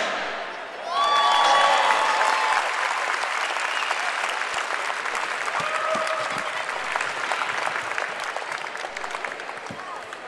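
A crowd cheers and applauds in a large echoing hall.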